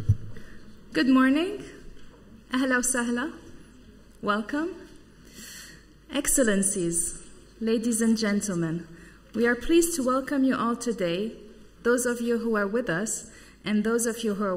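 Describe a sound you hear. A woman speaks calmly into a microphone, heard through loudspeakers in a large room.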